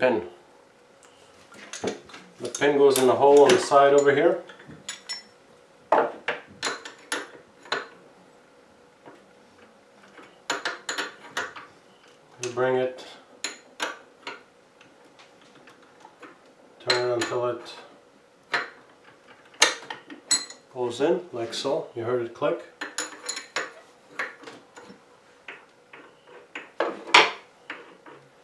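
Metal parts click and clatter.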